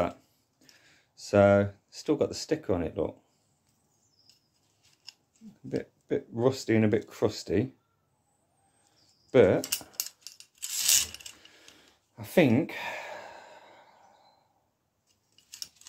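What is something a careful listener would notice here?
Metal parts of a bicycle derailleur click and rattle as hands work them.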